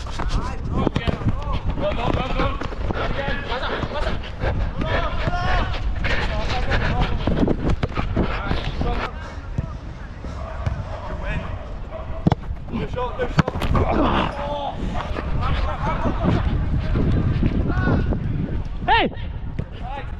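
Young men call out to one another across an open field.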